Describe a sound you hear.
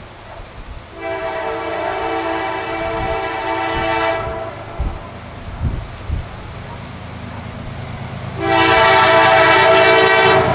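A train horn blasts loudly, twice.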